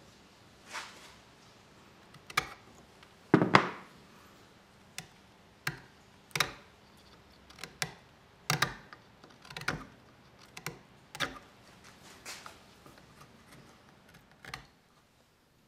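A knife shaves and scrapes wood in short, sharp strokes.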